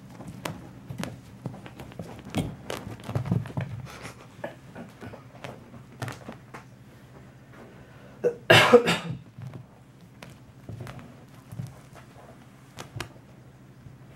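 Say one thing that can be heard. A kitten's paws scuffle and patter on carpet.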